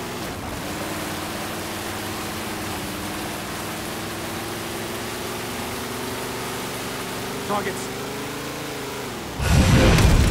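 A vehicle engine hums steadily and rises slightly in pitch.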